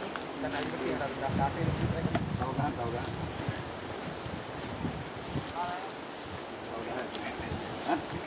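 Men talk outdoors.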